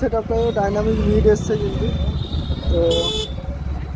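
A motorbike engine rumbles as it passes close by.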